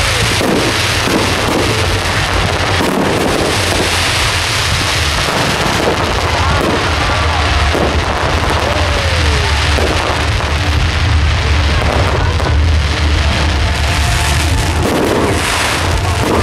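Fireworks boom with deep rumbling bursts.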